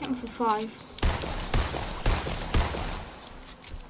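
Rifle shots ring out sharply, several times.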